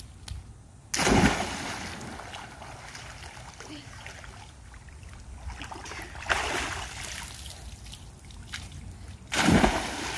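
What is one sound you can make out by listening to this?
A person splashes heavily into water.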